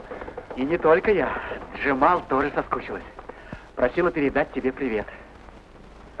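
A young man talks cheerfully at close range.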